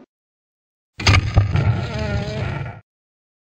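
A heavy metal door creaks open.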